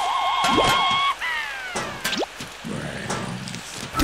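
Cartoon plants fire peas with soft popping sounds.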